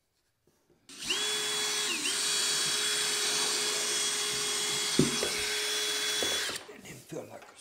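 A power drill whirs steadily.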